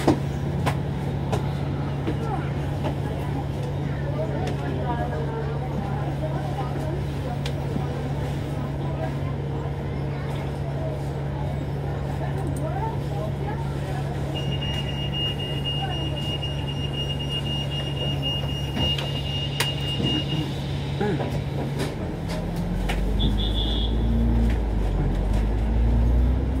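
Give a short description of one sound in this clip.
Traffic rumbles past on a busy street nearby.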